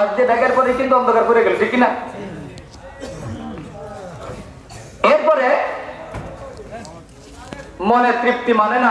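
An elderly man chants loudly through a microphone, heard over loudspeakers in an echoing space.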